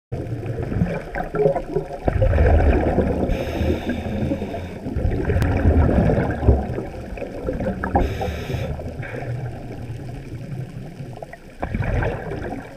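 Water rumbles and swirls in a low, muffled wash, as if heard underwater.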